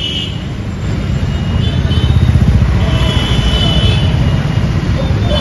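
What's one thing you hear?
A motorbike engine idles and rumbles close by.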